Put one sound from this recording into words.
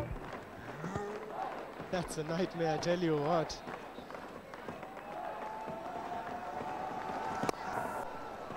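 A cricket bat cracks against a ball.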